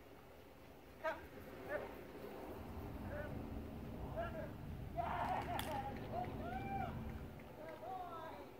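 A person calls out commands to a dog at a distance, outdoors.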